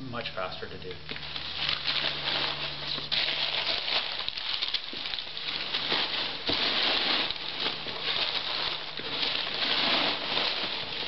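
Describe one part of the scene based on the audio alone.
Paper rustles and crinkles as it is crumpled and handled.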